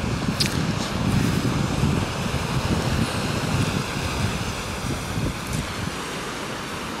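Wind blows outdoors, rumbling in gusts.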